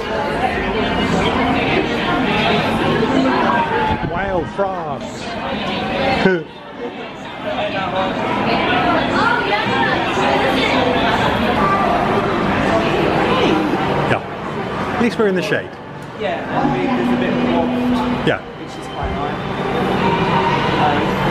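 A crowd chatters all around in a busy, echoing walkway.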